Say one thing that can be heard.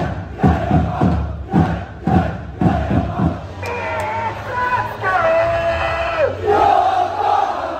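A large crowd chants and sings loudly outdoors.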